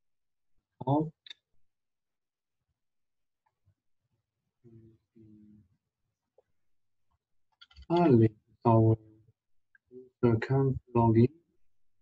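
A man speaks calmly through a microphone in short bursts.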